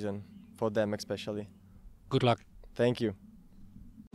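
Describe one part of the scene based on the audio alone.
A young man speaks calmly into a microphone close by.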